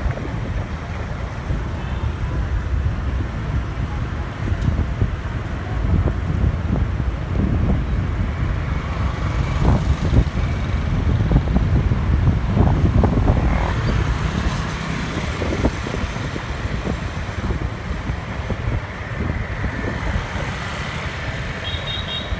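Wind buffets a microphone on a moving motorbike.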